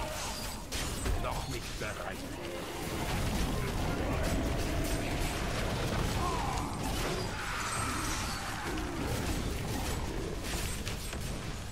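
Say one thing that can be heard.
Weapons clash and thud against monsters.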